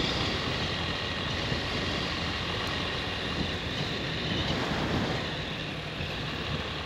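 Wind rushes loudly past.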